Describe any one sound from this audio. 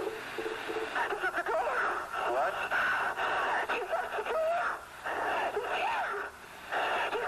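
A man speaks into a close microphone with animation.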